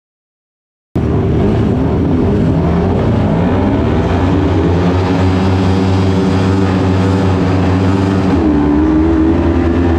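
A buggy engine roars and revs loudly.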